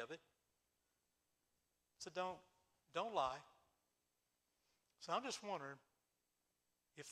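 An elderly man speaks calmly and expressively into a microphone, with pauses between phrases.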